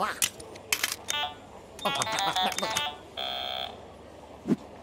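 Keypad buttons beep in quick electronic tones.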